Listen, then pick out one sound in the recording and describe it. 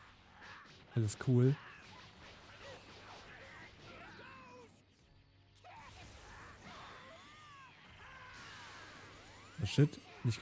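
Punches and blasts hit with loud bursts in a fighting game.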